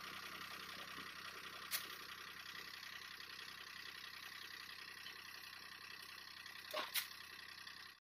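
Dry cane stalks rustle and thump as they are tossed onto a trailer.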